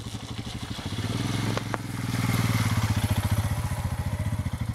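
A motorcycle splashes through shallow water.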